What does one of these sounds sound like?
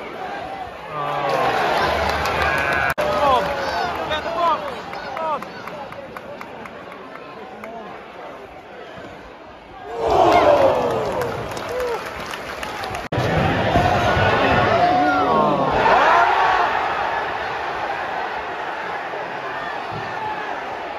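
Fans close by shout and cheer loudly.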